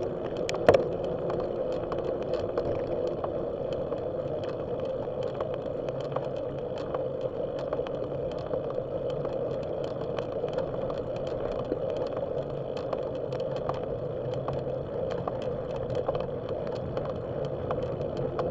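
Wind rushes past the microphone outdoors.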